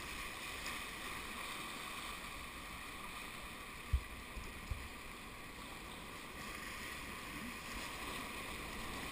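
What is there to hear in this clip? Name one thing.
Whitewater rapids rush and roar loudly all around.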